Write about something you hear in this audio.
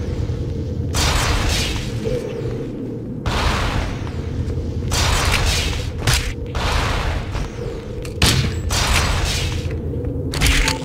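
Gunfire bursts out in a video game firefight.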